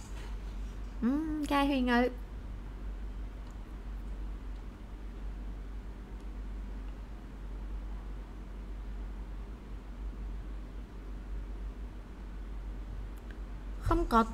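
A young woman speaks briefly and calmly into a microphone.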